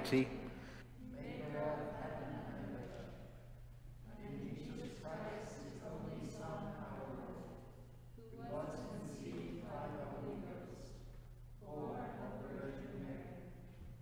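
A group of people recite together in unison, echoing in a large hall.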